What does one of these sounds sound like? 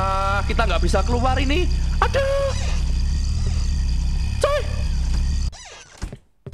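A ghostly woman shrieks loudly.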